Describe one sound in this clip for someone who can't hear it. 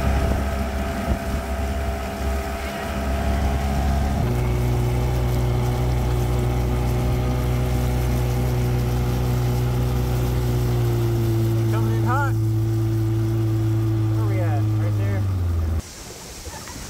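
A boat motor drones steadily, then cuts out.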